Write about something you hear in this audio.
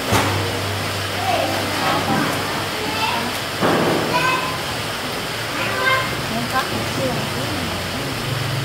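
A boy talks nearby.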